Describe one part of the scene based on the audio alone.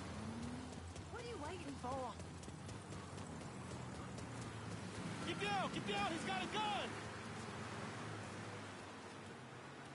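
Footsteps run on pavement.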